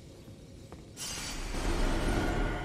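A shimmering magical burst swells with a rushing hiss.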